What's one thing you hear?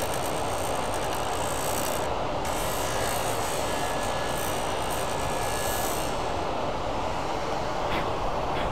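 A lathe motor hums and whirs steadily.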